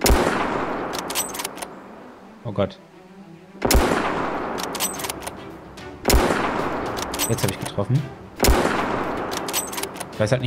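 A rifle bolt clicks and clacks between shots.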